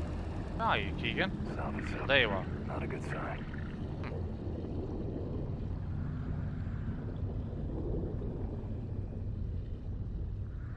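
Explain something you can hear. Water rumbles and bubbles steadily underwater.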